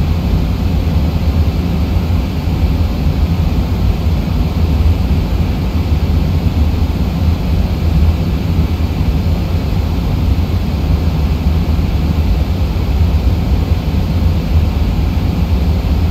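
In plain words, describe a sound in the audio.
Jet engines hum steadily with a low cockpit rumble.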